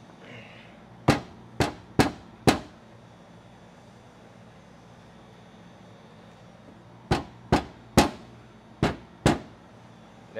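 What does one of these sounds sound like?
A drill's clutch clicks sharply a few times.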